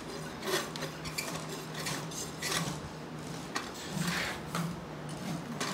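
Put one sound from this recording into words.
A metal rasp scrapes rhythmically across a horse's hoof.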